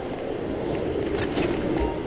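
Footsteps run across concrete.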